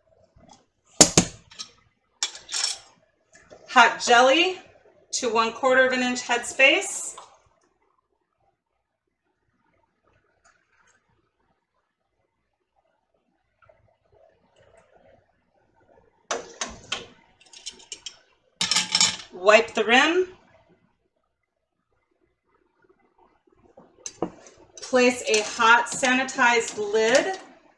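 Metal utensils clink against a pot.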